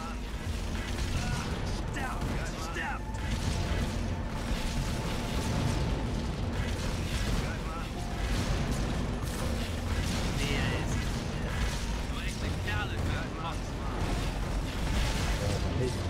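Laser beams zap in short bursts.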